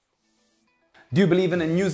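A man talks to the listener with animation.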